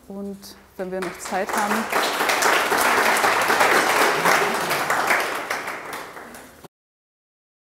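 An audience applauds, then the applause fades.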